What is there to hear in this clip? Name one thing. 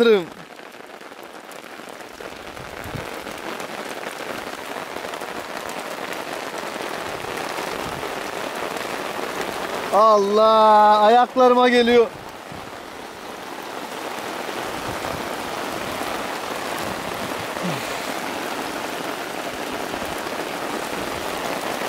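Steady rain hisses down onto a lake.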